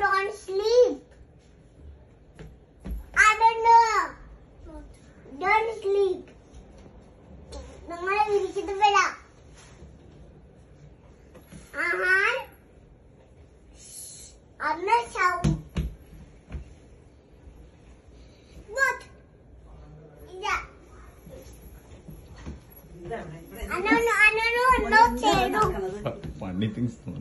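A young girl calls out in a high-pitched voice, close by.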